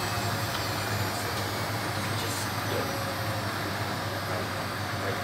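Water sloshes and splashes inside a washing machine drum.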